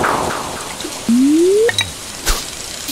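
A short rising chime sounds as the fish is landed.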